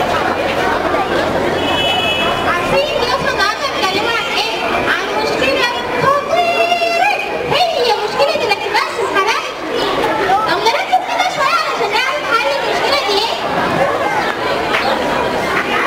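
A girl speaks with animation into a microphone.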